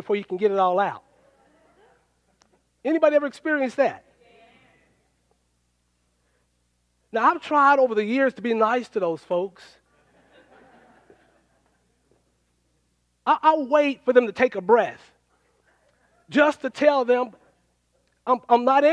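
A man speaks with animation into a microphone, heard through loudspeakers in a large room, with pauses between phrases.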